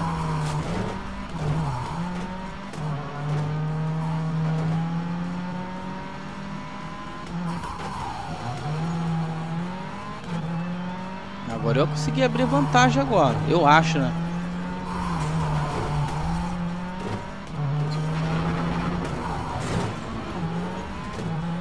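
Tyres skid and crunch on snow.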